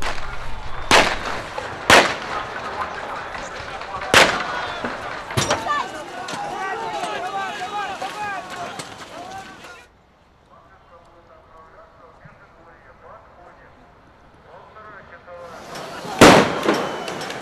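Loud bangs burst out sharply among a crowd.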